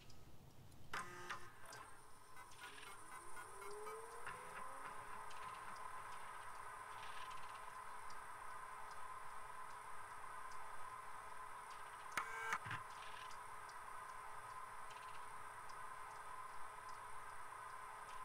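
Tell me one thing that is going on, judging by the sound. A computer terminal hums steadily.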